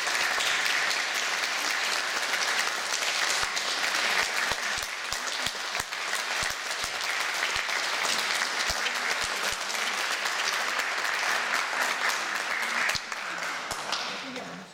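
An audience claps steadily in an echoing hall.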